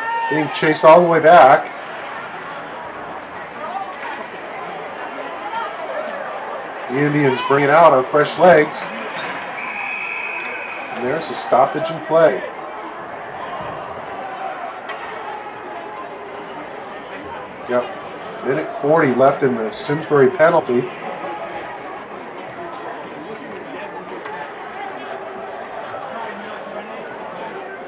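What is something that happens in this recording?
Ice skates scrape and hiss across the ice in a large echoing arena.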